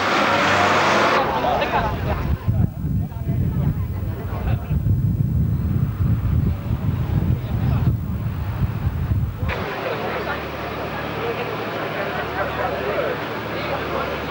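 A crowd of spectators chatters outdoors.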